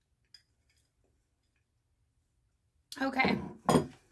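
A bowl is set down on a wooden counter with a clunk.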